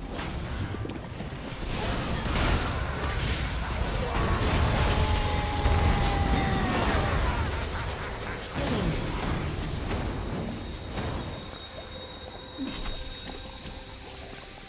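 Spell effects crackle and burst in rapid succession.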